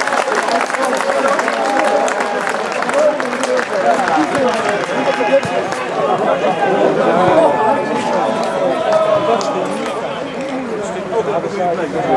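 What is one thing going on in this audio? Young men shout and cheer outdoors nearby.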